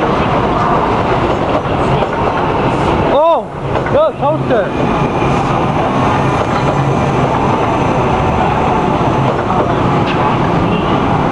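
An electric commuter train rolls past close by, its wheels rumbling on the rails.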